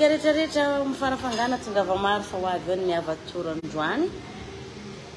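A young woman speaks with animation close to a microphone, her voice rising at the end.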